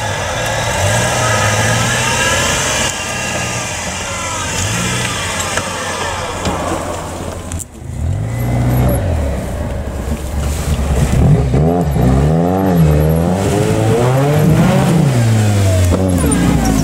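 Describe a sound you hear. An off-road vehicle's engine roars and revs up and down close by.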